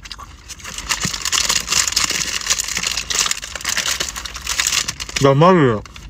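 Paper wrapping crinkles and rustles.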